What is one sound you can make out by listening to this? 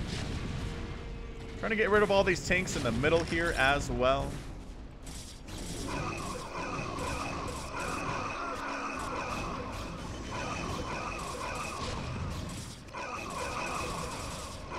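Rapid weapon fire crackles in a game battle.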